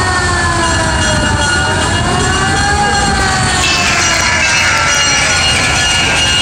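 Tyres roll on pavement.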